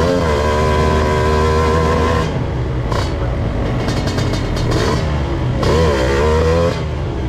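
A motorcycle engine revs loudly up close, rising and falling in bursts.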